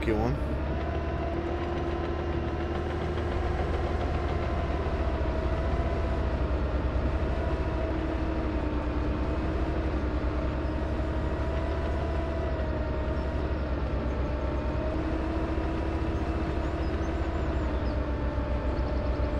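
A heavy diesel engine rumbles steadily and drones with a slowly wavering pitch.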